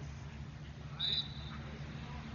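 A referee's whistle blows one short blast.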